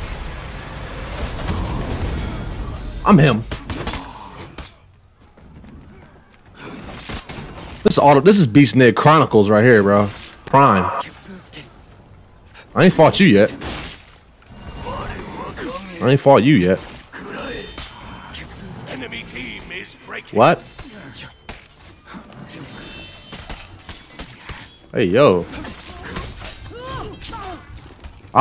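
Swords clash and clang in a game's battle.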